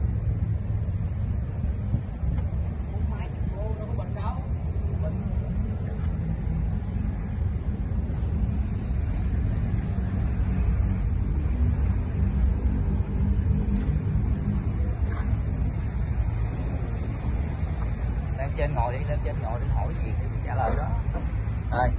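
A diesel tractor engine idles with a steady low rumble close by.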